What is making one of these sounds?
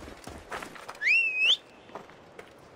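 A camel snorts and grunts.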